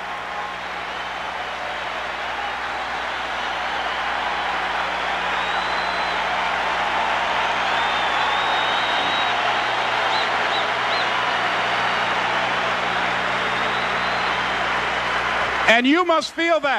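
A large crowd cheers and applauds in a vast open space.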